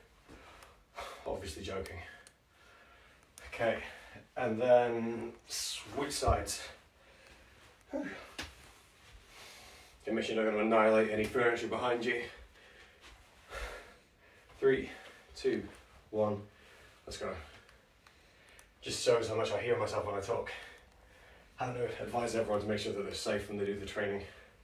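A man speaks calmly, close by, in short bursts.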